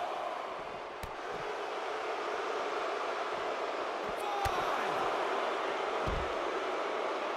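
Wrestlers' bodies thud against each other in heavy impacts.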